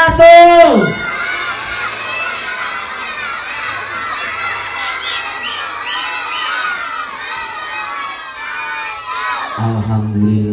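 A crowd of children chatters and shouts.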